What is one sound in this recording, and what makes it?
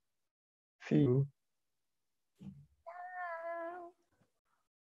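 A young man speaks cheerfully over an online call.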